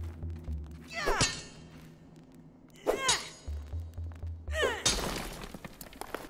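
A hammer strikes rock with loud ringing blows.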